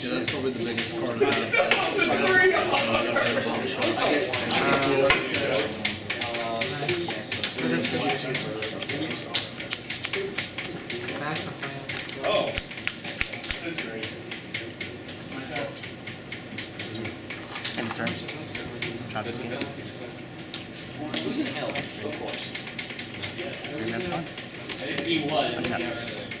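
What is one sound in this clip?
Playing cards are shuffled and flicked in hands.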